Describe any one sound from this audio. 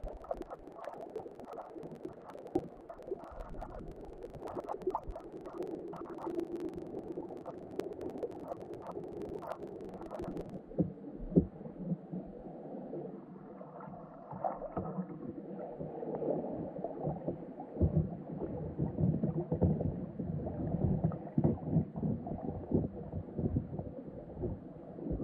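Water churns and rumbles close by underwater.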